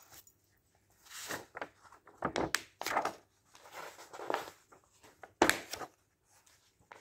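Glossy magazine pages rustle and flap as they are turned.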